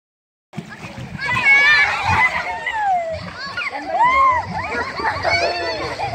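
Water splashes as children wade and move around.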